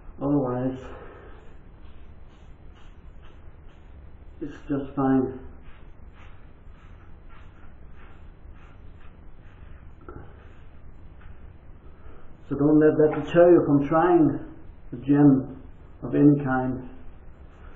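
A man talks close by in a small echoing room.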